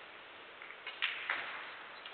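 Billiard balls clack together sharply.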